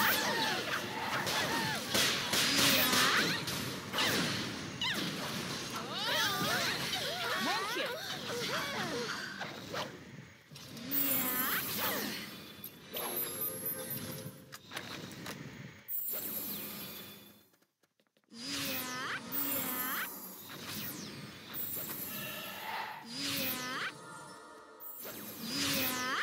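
Magic spells burst and whoosh in a game battle.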